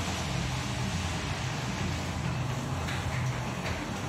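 Water sprays from a hose onto a hard floor.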